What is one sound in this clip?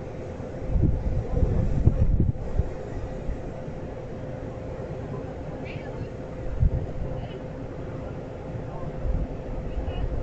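Passenger train cars roll slowly along the track with a low rumble and clunks.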